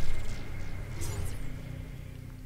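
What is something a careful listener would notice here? An electronic menu chime sounds.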